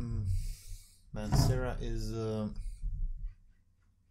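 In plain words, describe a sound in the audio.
A glass bottle is set down on a wooden table.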